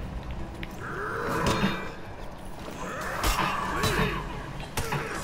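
Metal blades clash and clang in a fight.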